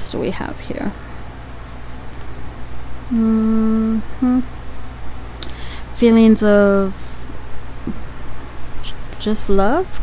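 Playing cards rustle and slide as they are shuffled by hand.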